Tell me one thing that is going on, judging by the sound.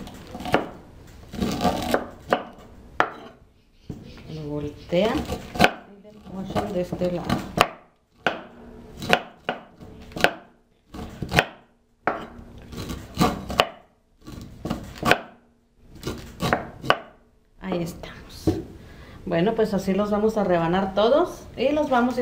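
A knife knocks against a wooden board.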